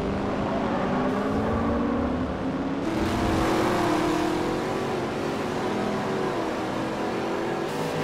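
Racing car engines roar steadily at high speed.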